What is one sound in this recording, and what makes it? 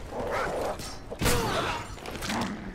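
A knife whooshes in a sharp swing.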